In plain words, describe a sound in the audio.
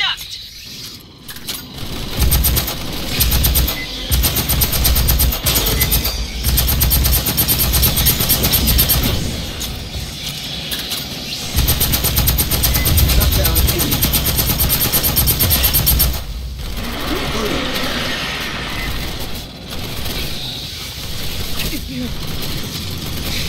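Creatures shriek and hiss.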